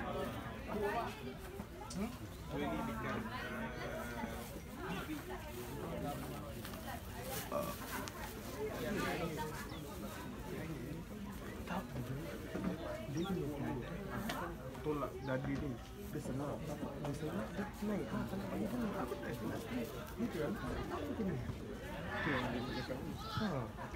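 Several men talk nearby outdoors, with their voices overlapping.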